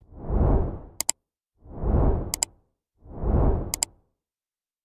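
A computer mouse clicks twice in quick succession.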